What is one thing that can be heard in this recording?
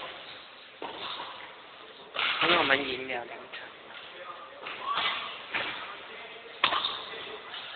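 A racket smacks a shuttlecock in a large echoing hall.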